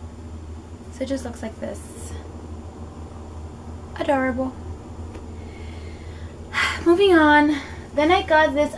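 A young woman talks animatedly close by.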